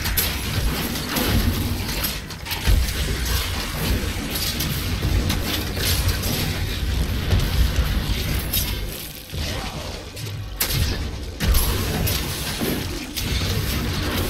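Magic spells crackle and explode in quick bursts.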